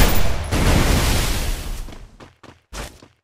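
A loud rushing crash bursts out and fades away.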